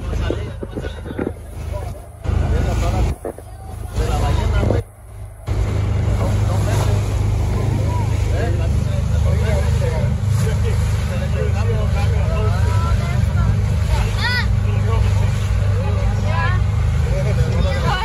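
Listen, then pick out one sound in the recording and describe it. Wind blows against the microphone.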